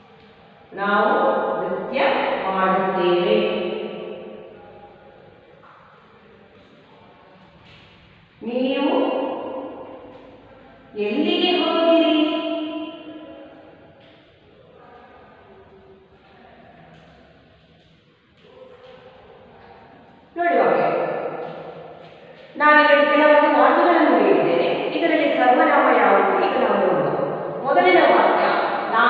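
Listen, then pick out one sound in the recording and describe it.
A woman speaks clearly and loudly in an echoing room.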